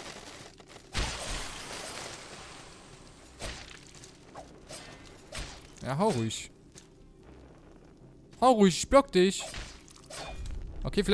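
A sword swings and strikes with sharp metallic hits.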